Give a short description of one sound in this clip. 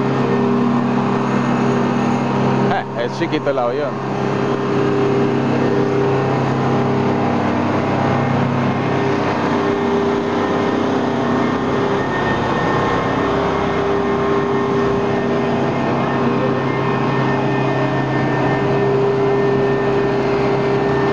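An aircraft engine drones steadily nearby.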